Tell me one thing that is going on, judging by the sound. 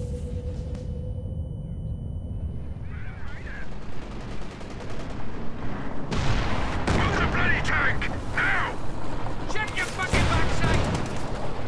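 Tank engines rumble low and steadily.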